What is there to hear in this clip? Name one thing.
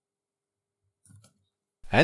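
A spray nozzle is screwed onto a plastic bottle.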